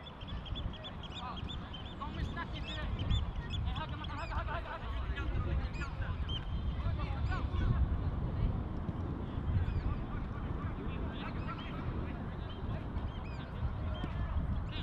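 Young male players shout to each other in the distance across an open field.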